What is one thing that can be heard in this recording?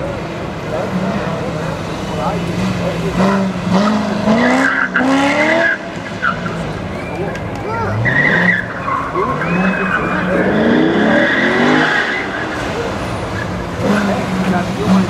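A sports car engine revs hard, rising and falling in pitch as it accelerates through turns.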